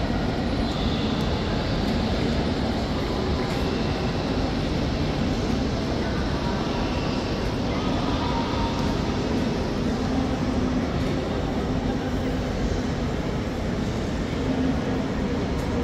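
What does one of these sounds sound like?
Escalators hum steadily.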